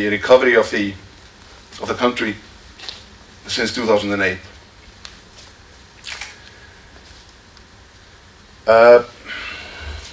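A man speaks through a microphone in a large hall, in short bursts with pauses.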